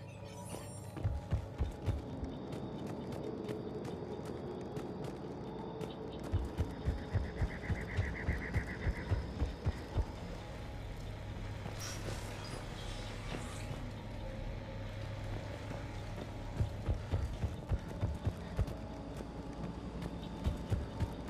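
Heavy armoured footsteps thud quickly on a hard floor.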